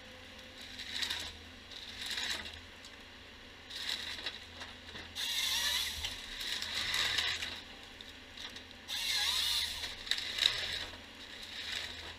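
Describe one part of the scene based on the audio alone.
A harvester engine runs steadily nearby.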